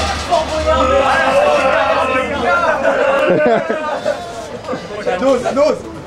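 A crowd of people chatter and call out, echoing in a covered space.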